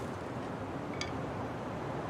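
A short click sounds as a stick is picked up.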